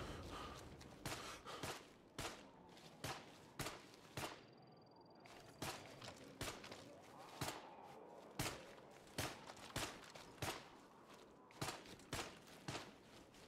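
Footsteps swish through tall grass at a steady pace.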